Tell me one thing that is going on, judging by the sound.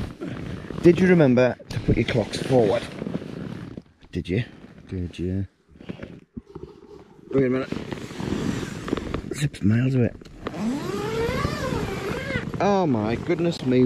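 Tent fabric rustles and flaps as it is handled.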